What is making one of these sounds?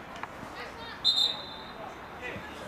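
A referee's whistle blows one short, sharp blast.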